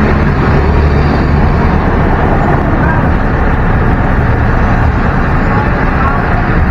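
A vehicle's engine rumbles loudly up close as it drives along.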